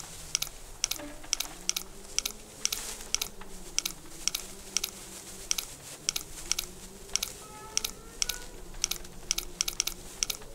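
A young man speaks calmly and quietly into a microphone.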